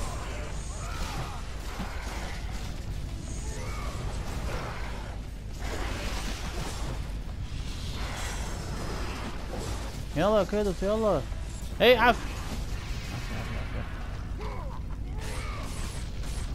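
Chained blades whoosh and slash through the air.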